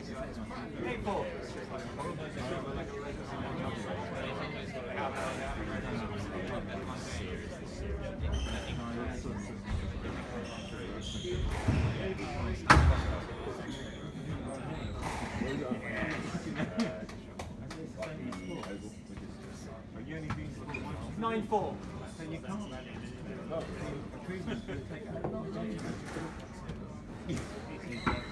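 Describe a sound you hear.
A squash ball smacks against racquets and walls, echoing in an enclosed court.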